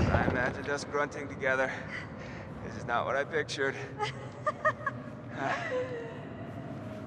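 A young man speaks playfully, close by.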